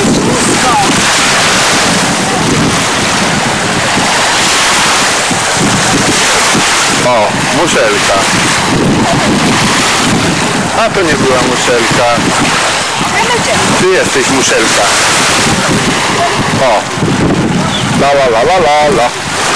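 Shallow sea water splashes around a woman's legs.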